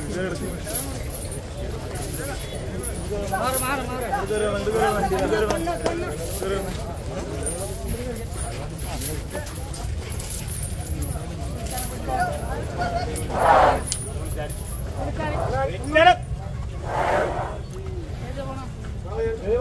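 A crowd of men chatter and call out close by, outdoors.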